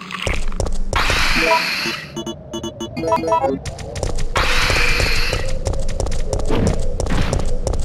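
A large creature snarls and shrieks.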